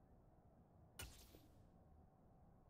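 A short electronic whoosh sounds.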